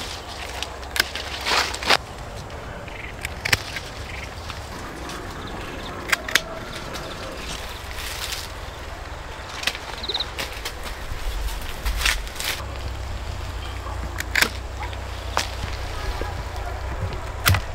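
Leaves rustle as hands handle fruit on a branch.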